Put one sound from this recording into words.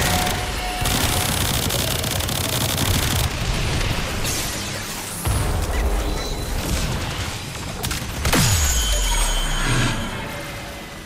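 Energy weapons blast and roar loudly in a fight.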